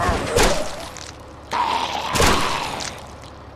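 A shotgun fires two loud blasts.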